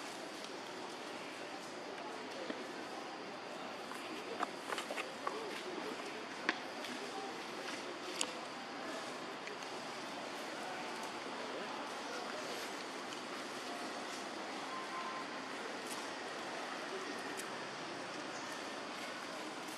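Macaques rustle through dry leaves on the ground.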